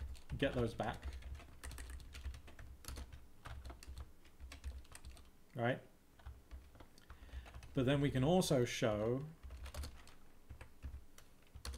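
Keys on a keyboard click quickly.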